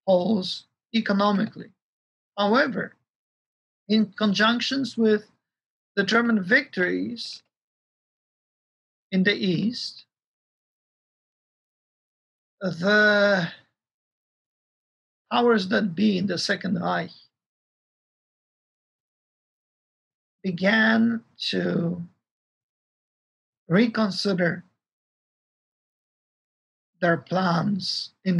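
A middle-aged man speaks calmly over an online call, with pauses between phrases.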